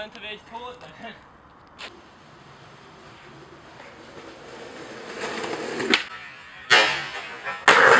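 A skateboard clatters on the pavement.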